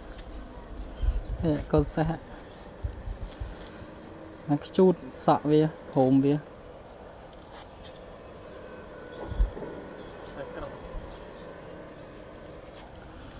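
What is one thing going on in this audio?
A pony crunches and tears at grass as it grazes.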